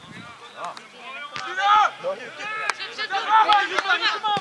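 Teenage boys shout loudly during play.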